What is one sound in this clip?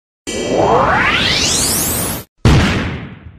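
A rocket whooshes past.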